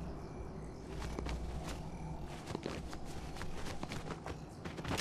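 Footsteps thud on a hard floor in a quick series.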